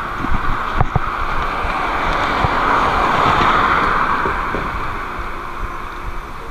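A pickup truck drives past close by.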